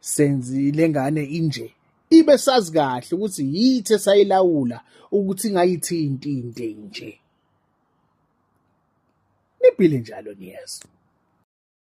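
A man speaks with animation close to a phone microphone.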